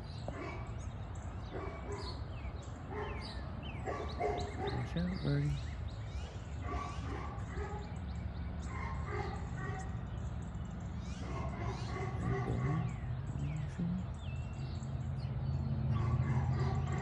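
Many birds chirp and call outdoors.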